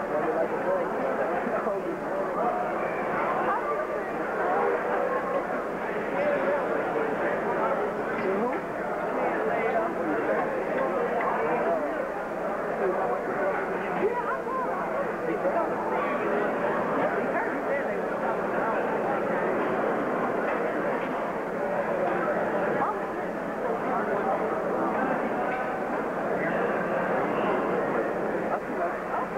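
A ringside crowd chatters and murmurs.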